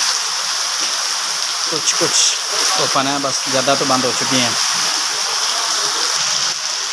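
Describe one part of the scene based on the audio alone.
Rainwater drips and splashes from a roof edge onto a wet lane.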